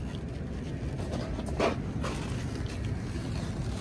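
A man laughs softly close to the microphone.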